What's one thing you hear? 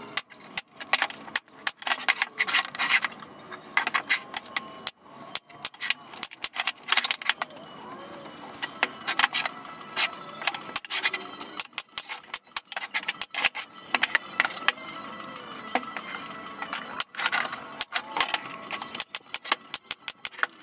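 Wooden boards knock against each other and a bench.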